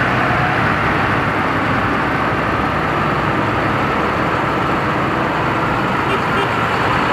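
Large tyres roll over the road.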